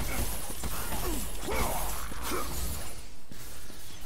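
Chained blades slash and strike with sharp metallic hits.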